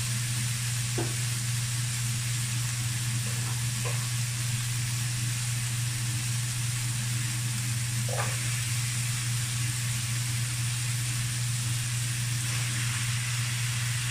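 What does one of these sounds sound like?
Chunks of vegetable drop into a pan.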